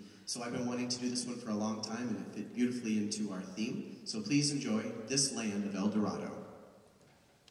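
A man speaks clearly into a microphone in a large hall.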